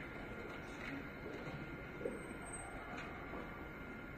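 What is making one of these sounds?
A woman speaks faintly through a microphone in a large hall.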